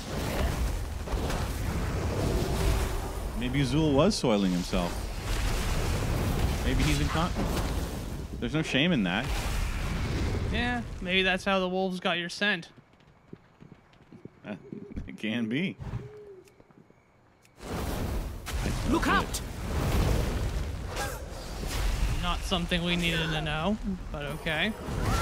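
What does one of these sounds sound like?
Spells crackle and blast during a fantasy battle.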